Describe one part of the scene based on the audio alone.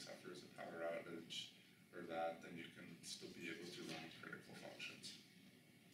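A man speaks calmly, giving a talk.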